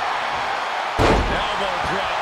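A body slams hard onto a wrestling mat with a heavy thud.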